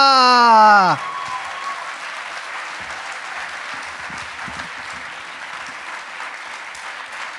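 An audience murmurs softly in a large echoing hall.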